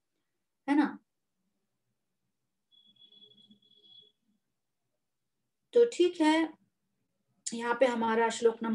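A middle-aged woman speaks calmly through an online call, in short phrases with pauses.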